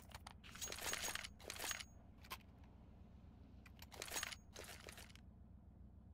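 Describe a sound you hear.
A knife swishes as it is twirled in a hand.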